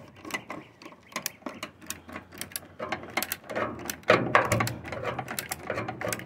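A screwdriver clicks and scrapes against a metal screw.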